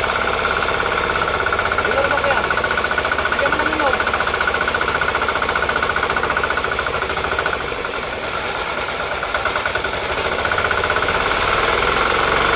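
Water gushes from a pipe and splashes onto the ground.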